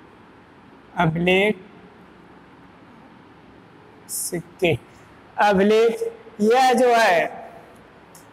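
A man speaks calmly in short phrases.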